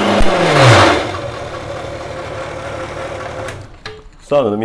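A food processor motor whirs and then winds down.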